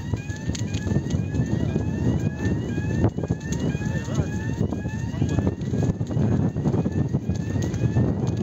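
A fire roars and crackles loudly close by.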